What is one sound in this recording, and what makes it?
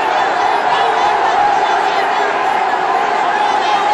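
An elderly woman shouts slogans with the crowd.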